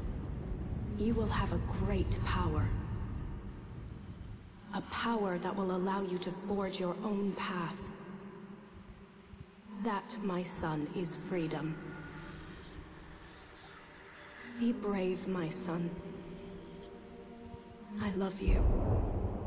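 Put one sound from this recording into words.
A woman speaks softly and slowly, with an echo.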